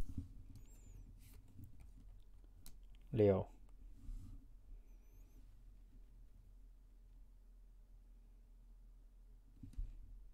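Cards slide softly across a table.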